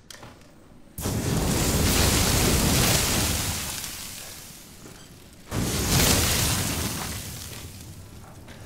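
A flamethrower roars in two long bursts of fire.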